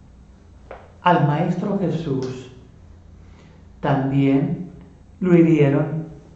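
An elderly man speaks calmly up close, in short bursts.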